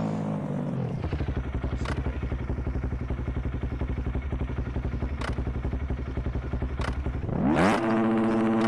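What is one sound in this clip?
A motorcycle engine idles steadily.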